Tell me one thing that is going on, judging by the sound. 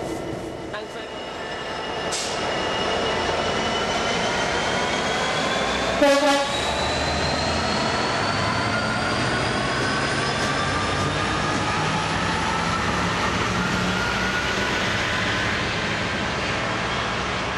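A locomotive's engine whine rises steadily in pitch as it pulls away.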